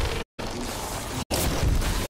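Electric crackling zaps and sizzles.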